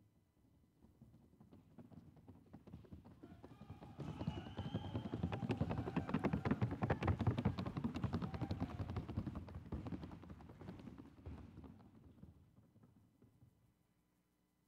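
A horse's hooves beat a fast, even rhythm, growing louder and then fading away.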